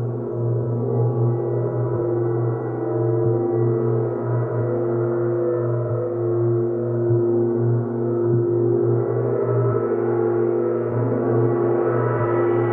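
Large gongs hum and shimmer in a deep, steady drone.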